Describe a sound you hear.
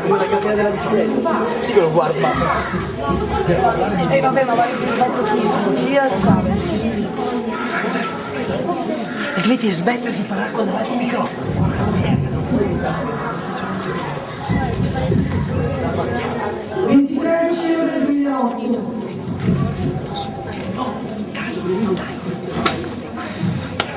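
A crowd of young people chatter and shout over each other close by, in a loud, busy room.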